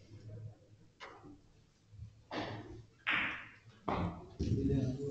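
Billiard balls knock against each other and the cushions.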